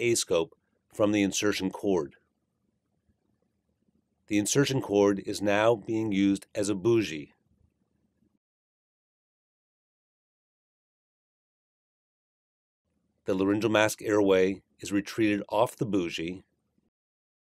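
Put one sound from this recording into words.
A man speaks calmly and clearly, close by, with long pauses.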